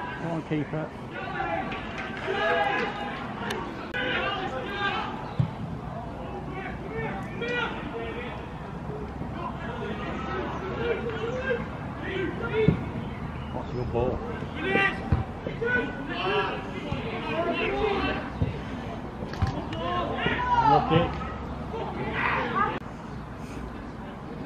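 Men shout to each other across an open pitch outdoors.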